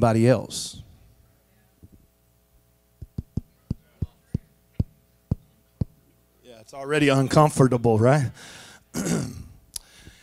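A middle-aged man speaks with animation through a microphone and loudspeakers in a large room.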